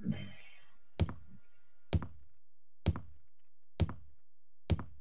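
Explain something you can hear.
Heavy footsteps thud slowly up wooden stairs.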